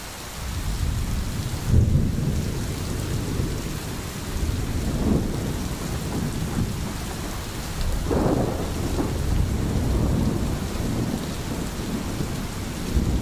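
Rain falls steadily on leaves.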